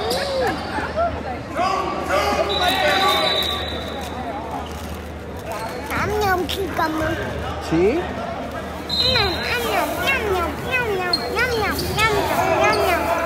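A crowd in the stands chatters and cheers in a large echoing gym.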